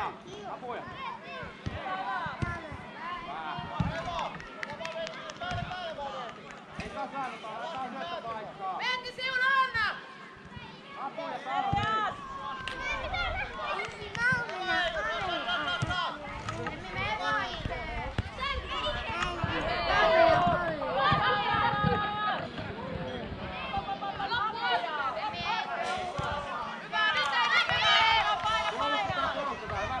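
Young girls shout and call to each other across an open field.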